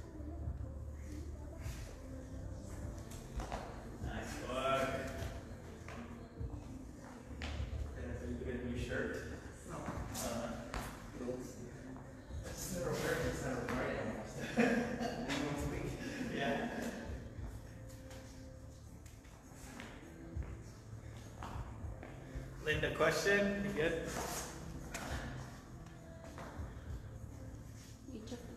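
Dumbbells clunk on a rubber floor.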